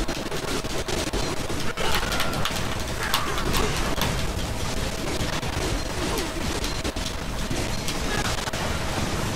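Metal blades clash and slice rapidly.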